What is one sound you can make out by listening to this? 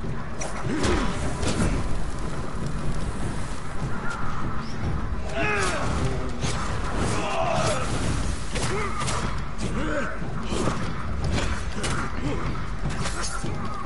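Swords clash and clang sharply, again and again.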